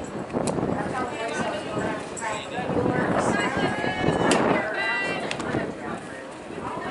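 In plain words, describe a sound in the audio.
Young women shout and cheer from across a field outdoors.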